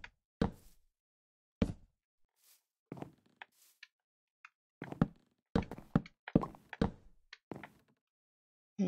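Wooden blocks thud softly as they are set down one after another.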